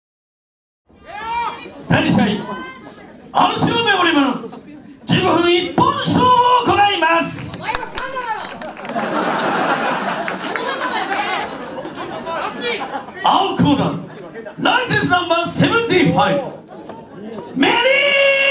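A man announces loudly through a microphone in a large echoing hall.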